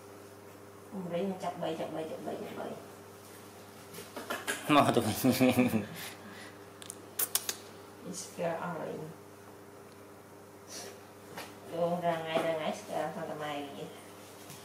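A young woman talks softly and coaxingly close by.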